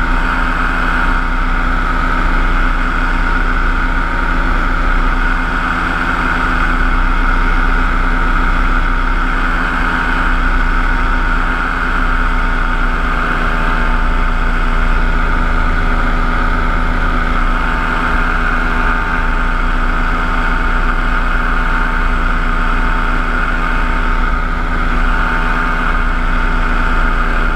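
A paramotor engine drones steadily close by.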